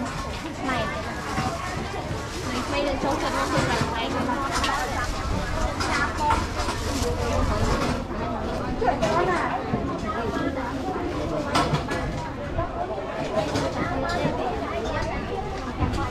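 A crowd of men and women chatter busily all around outdoors.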